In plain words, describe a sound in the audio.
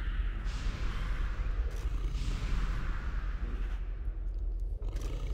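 Magic spells burst and crackle in a busy game battle.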